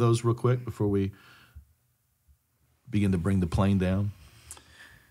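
A man speaks calmly and closely into a microphone, with short pauses.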